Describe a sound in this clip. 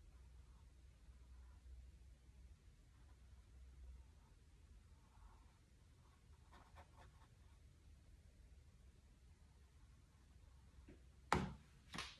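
A paintbrush dabs on canvas.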